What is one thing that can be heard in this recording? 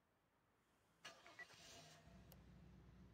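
An engine starts up with a clatter.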